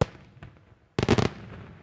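A rapid volley of firework bangs crackles at the end.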